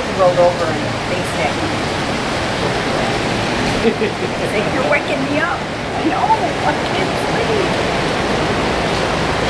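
A middle-aged woman speaks calmly nearby.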